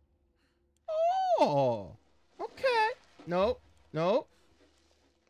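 A young man exclaims loudly into a close microphone.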